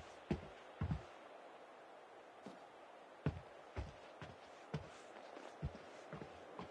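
Footsteps thud on hollow wooden boards.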